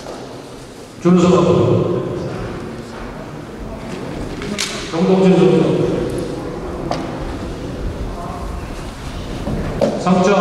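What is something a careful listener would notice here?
A man reads out over a loudspeaker in an echoing hall.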